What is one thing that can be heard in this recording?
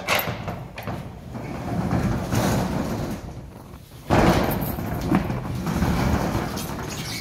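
A metal roll-up door rattles and rumbles as it rolls up.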